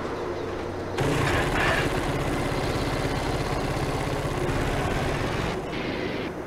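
A quad bike engine rumbles steadily.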